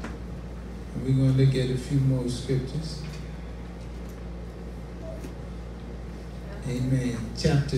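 A man preaches with emphasis through a microphone and loudspeakers in a room.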